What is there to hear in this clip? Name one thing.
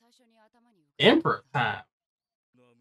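Another young man talks with animation close to a microphone.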